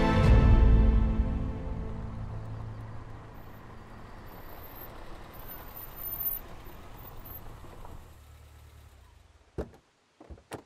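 A car engine rumbles and slowly fades.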